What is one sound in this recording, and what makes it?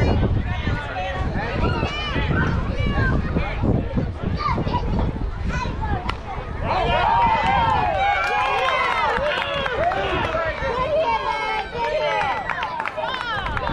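Young girls shout and cheer from across an open field.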